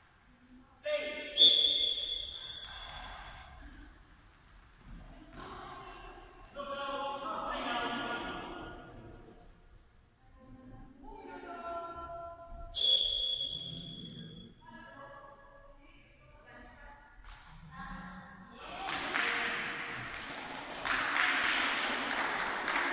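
Children call out and chatter, echoing in a large hall.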